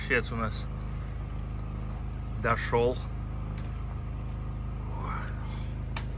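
A ladle scrapes and stirs in a pot of soup.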